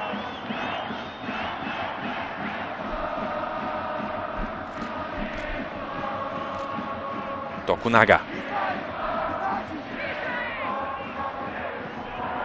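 A large crowd chants and sings steadily in an open stadium.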